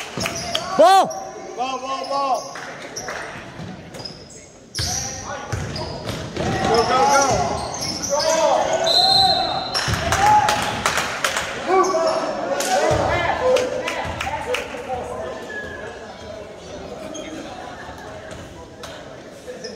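A basketball bounces on a hardwood floor in an echoing hall.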